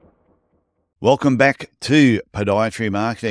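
A man speaks with animation into a microphone over an online call.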